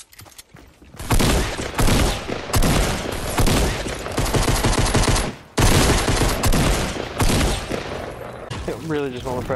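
Gunshots fire rapidly and loudly.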